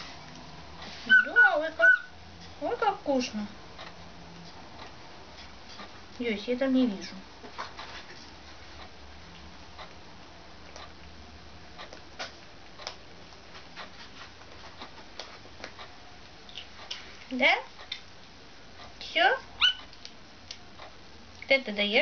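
A kitten mews loudly, close by.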